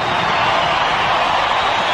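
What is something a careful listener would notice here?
A man shouts with his mouth wide open.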